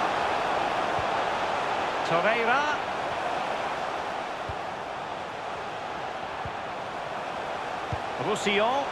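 A football is kicked with soft thumps now and then.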